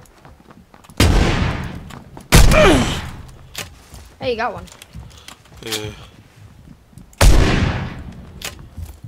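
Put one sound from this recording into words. A shotgun fires loud blasts that echo.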